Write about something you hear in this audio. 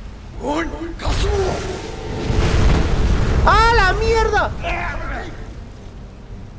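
A fiery blast roars and rumbles.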